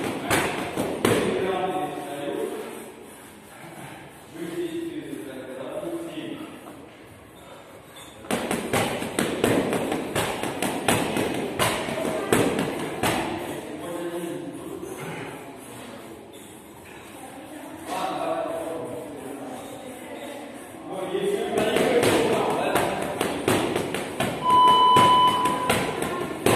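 Gloved fists thud repeatedly against a heavy punching bag.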